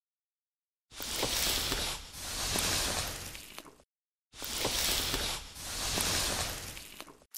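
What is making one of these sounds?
A hairbrush swishes through long hair in slow strokes.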